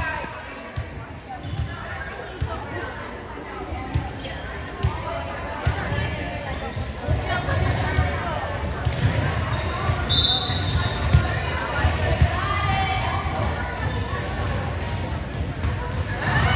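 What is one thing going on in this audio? A volleyball is struck with sharp slaps.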